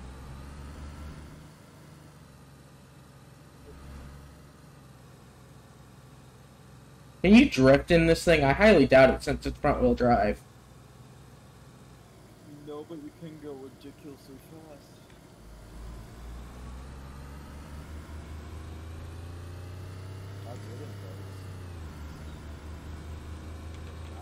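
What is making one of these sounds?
A car engine hums steadily, rising in pitch as the car speeds up.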